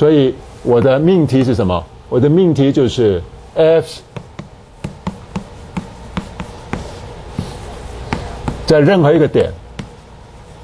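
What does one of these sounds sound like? A middle-aged man speaks with animation in a reverberant room.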